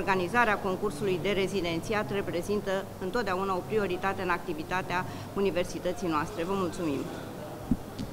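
A middle-aged woman speaks calmly into microphones.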